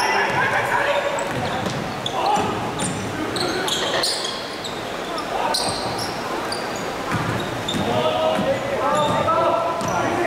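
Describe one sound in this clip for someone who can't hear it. Sneakers squeak sharply on a hard court floor, echoing in a large hall.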